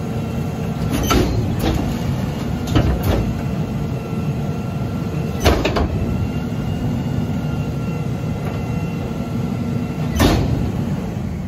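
A garbage truck's compactor clanks and bangs as it presses down.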